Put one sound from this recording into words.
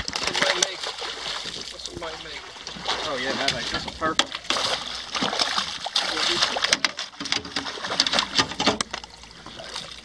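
A large fish thrashes and splashes at the water's surface close by.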